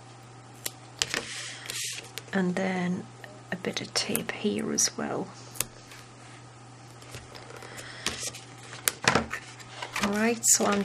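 Stiff paper rustles and scrapes as it is folded and handled.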